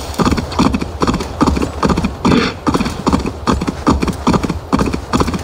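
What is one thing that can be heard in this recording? Hooves thud rapidly and steadily on soft ground as a large animal gallops.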